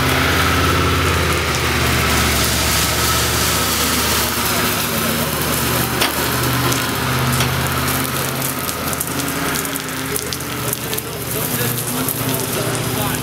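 Water sprays against a vehicle.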